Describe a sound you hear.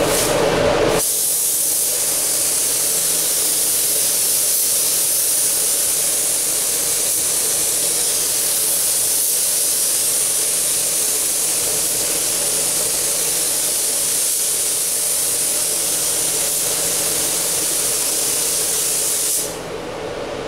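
A spray gun hisses steadily, close by.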